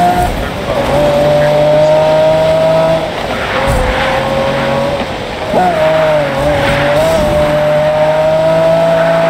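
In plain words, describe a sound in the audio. A sports car engine roars at high revs, shifting gears as it speeds along.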